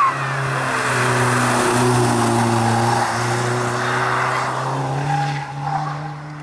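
A rally car engine roars loudly as the car accelerates through a bend and away.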